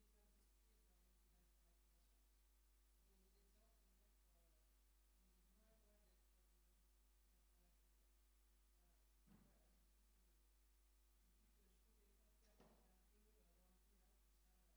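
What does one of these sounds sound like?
A man speaks calmly through a microphone in a large hall, faint and distant.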